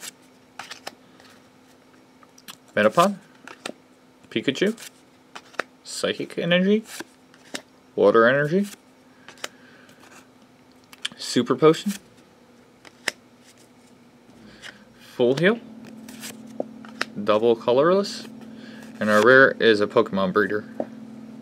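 Trading cards flick and slide against each other in a hand.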